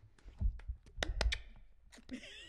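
A woman claps her hands a few times.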